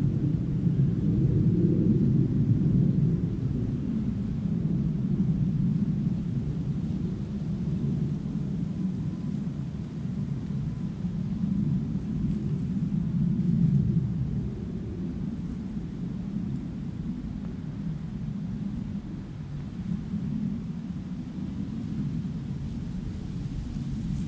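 Wind blows and rumbles steadily outdoors.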